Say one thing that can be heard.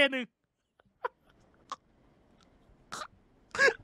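A young man sobs and whimpers close to a microphone.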